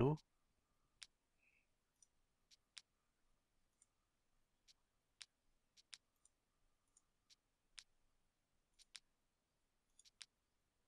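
Soft interface clicks sound as menu tabs are switched.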